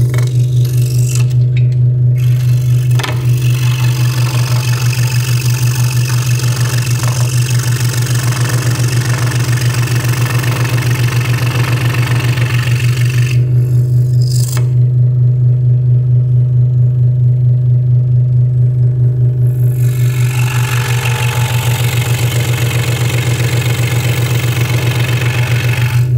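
A scroll saw blade rasps through wood.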